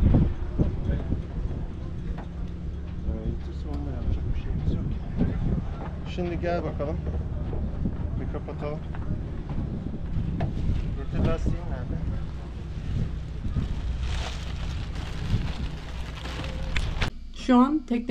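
Wind blows and rumbles into the microphone outdoors.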